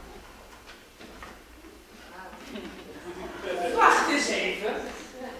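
Dancers' feet tap and stamp on a wooden stage.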